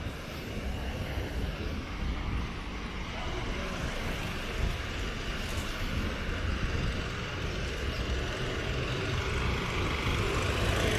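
City traffic rumbles steadily along a street outdoors.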